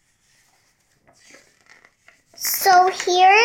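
Paper pages rustle as a book's page is turned.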